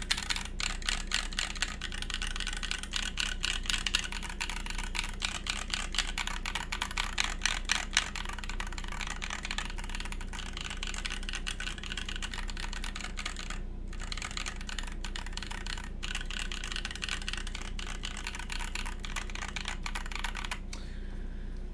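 Fingers type quickly on a mechanical keyboard, with rapid clacking keys.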